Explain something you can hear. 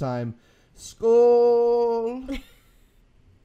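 A young man calls out in a long, drawn-out sung note.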